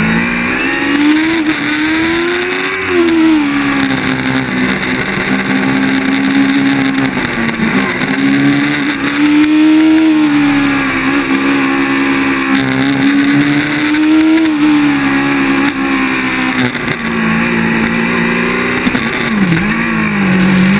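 A racing car engine roars close by, rising and falling in pitch as it speeds up and slows down.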